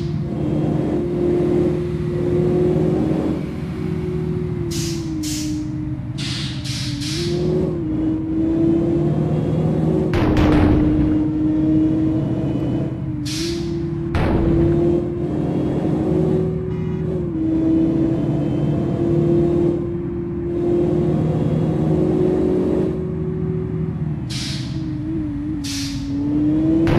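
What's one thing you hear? A car engine hums steadily at speed, its pitch dipping and rising with gear changes.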